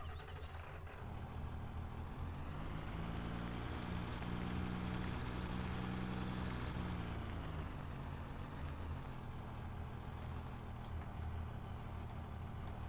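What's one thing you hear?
A truck engine revs up, drones steadily and then eases off.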